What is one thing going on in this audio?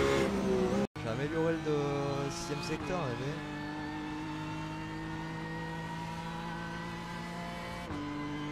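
A race car engine roars at high speed down a straight.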